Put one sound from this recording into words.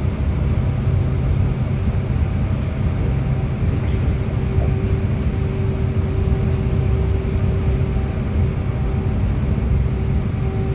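A bus engine rumbles steadily as the bus drives through a tunnel.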